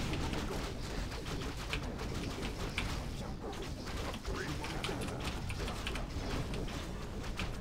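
Battle sounds from a game clash and crackle.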